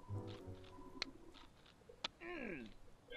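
A metal hammer clanks against rock.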